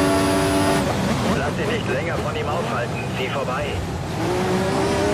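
Tyres squeal as a racing car brakes hard into a corner.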